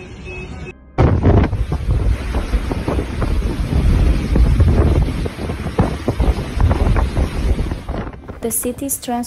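Heavy rain pours down hard.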